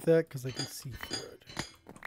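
A pickaxe chips at a block.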